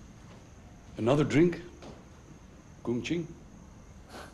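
An older man speaks in a low, firm voice nearby.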